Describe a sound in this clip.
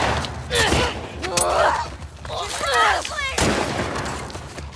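A man groans and gasps while being choked.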